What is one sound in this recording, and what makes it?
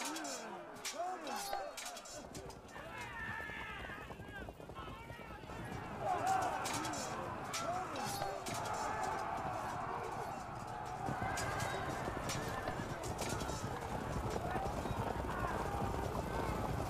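Swords and weapons clash repeatedly in a battle.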